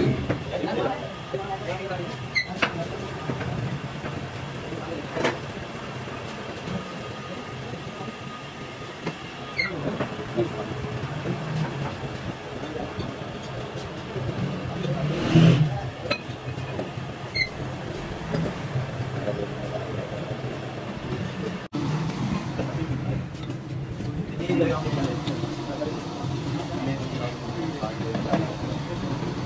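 Metal engine parts clink as they are handled.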